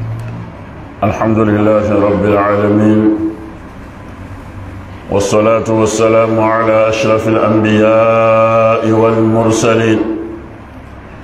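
A man chants loudly through a microphone in long, sung phrases.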